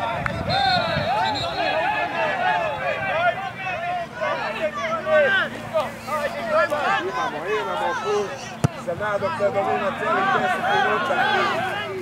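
Men shout to each other across an open field in the distance.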